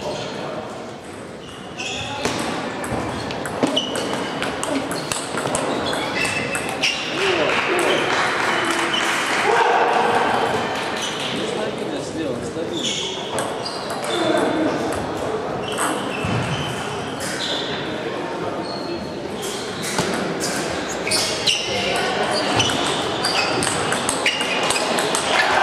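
A table tennis ball clicks quickly back and forth off paddles and a table in an echoing hall.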